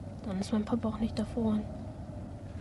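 A young boy speaks quietly, close by.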